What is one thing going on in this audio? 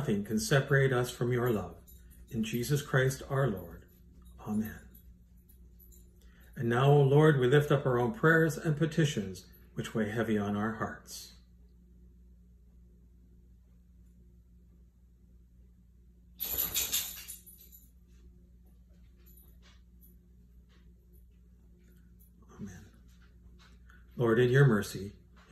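An older man speaks calmly and clearly, close by, with pauses between phrases.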